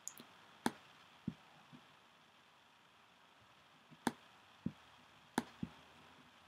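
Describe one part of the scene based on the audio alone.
Short sharp clicks sound as chess pieces are moved in a game.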